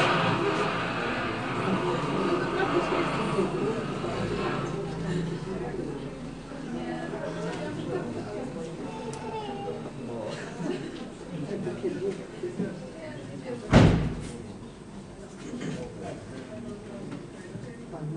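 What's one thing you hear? A bow scrapes across taut strings, making a raspy, wavering drone.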